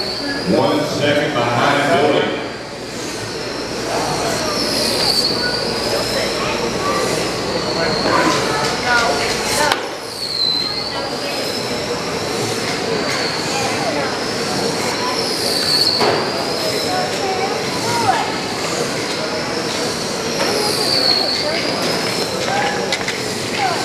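Small electric motors whine high as toy cars race around a track.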